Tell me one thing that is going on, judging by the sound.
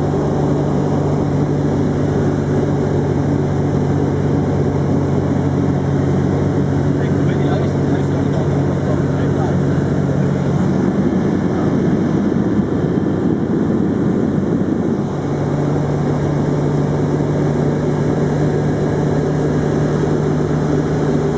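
A small plane's engine drones steadily and loudly.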